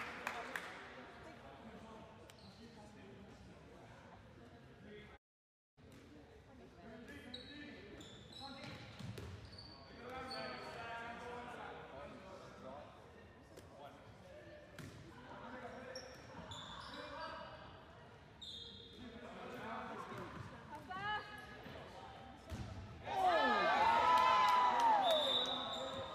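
Teenage boys shout to each other across an echoing gym.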